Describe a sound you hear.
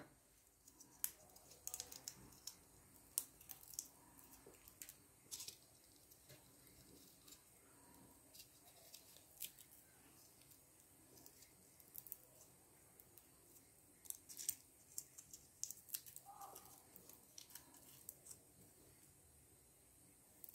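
Fingers crack and crumble dried seed pods.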